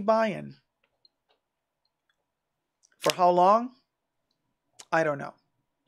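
A young man speaks with animation, close to a microphone, in short bursts.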